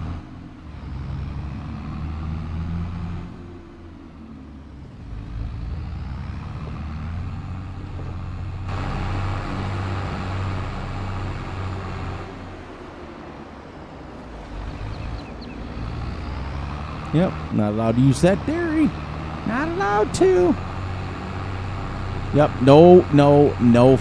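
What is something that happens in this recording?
A tractor engine rumbles steadily, rising and falling with speed.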